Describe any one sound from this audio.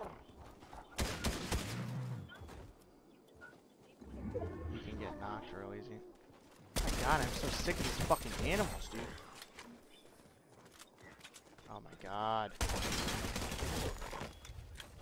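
Rapid rifle fire bursts out in a video game.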